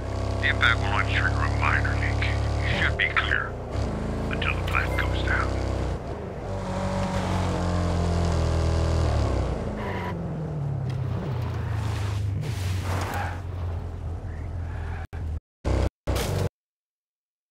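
A pickup truck's engine hums steadily as it drives along a road.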